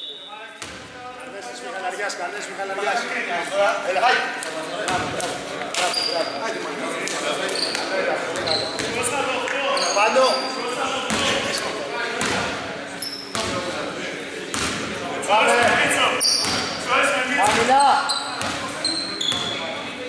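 Basketball shoes squeak on a hardwood court in an echoing hall.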